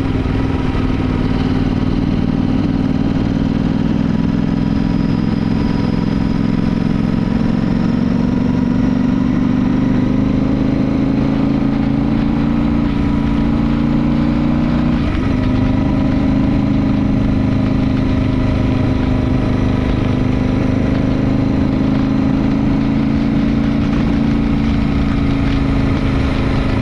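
A motorcycle engine rumbles steadily, shifting gear once partway through.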